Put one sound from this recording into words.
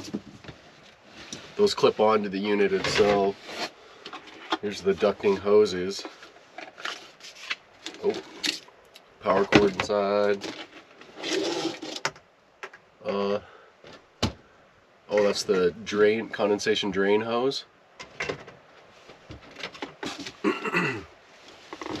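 Items clatter as a man unpacks a cardboard box.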